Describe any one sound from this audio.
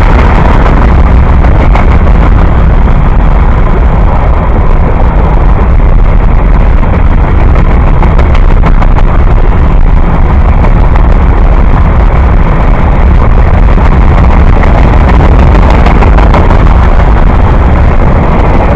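Freight cars rumble loudly past on the rails, close by.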